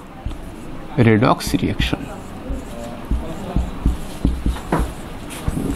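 A marker squeaks as it writes on a whiteboard.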